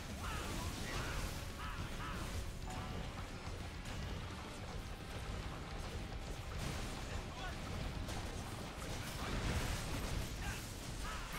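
Magic blasts and explosions boom and crackle in rapid bursts.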